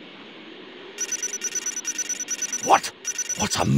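Rapid electronic beeps tick as a game score counts up.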